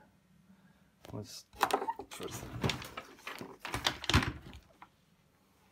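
A hand brushes and knocks against a wooden cabinet close by.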